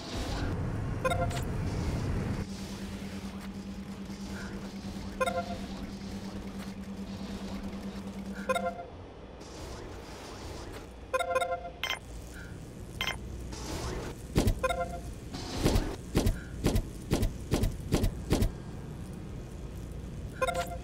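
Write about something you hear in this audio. Short electronic chimes sound from a game interface.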